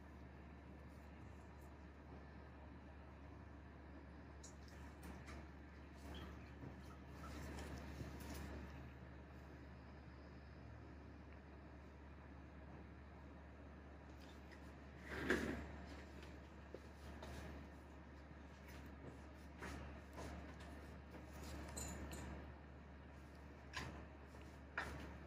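Gloved fingers squeeze and press on skin.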